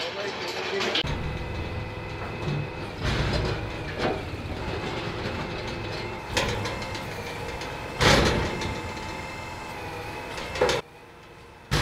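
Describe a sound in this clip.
A small engine idles steadily.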